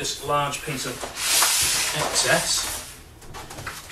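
A large sheet of paper rustles and crinkles as it is lifted and laid down.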